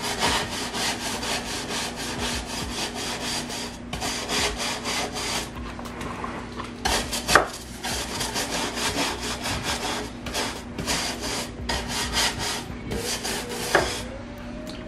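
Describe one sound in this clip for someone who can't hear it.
A stiff brush scrubs rapidly back and forth over wood.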